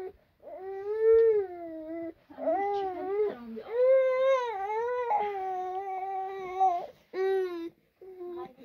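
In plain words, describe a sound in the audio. A small child cries and wails loudly nearby.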